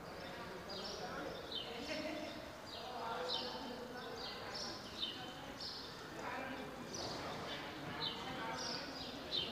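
Carriage wheels rattle and creak as a cart rolls along.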